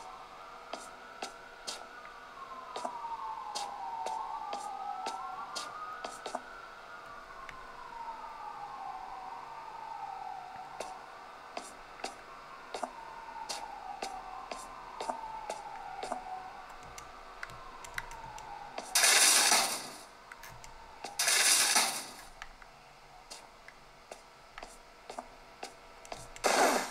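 Buttons on a handheld game console click under the thumbs.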